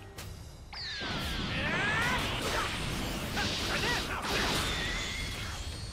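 Energy blasts whoosh and explode in a video game.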